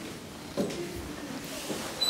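A young person speaks quietly close by.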